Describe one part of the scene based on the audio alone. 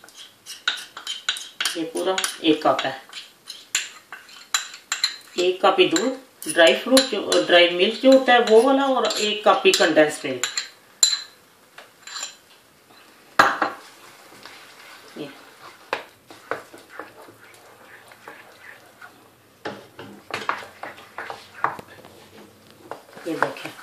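A wooden spoon scrapes and taps against a pan.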